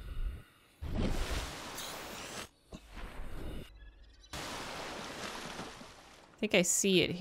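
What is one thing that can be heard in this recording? Water splashes and rushes.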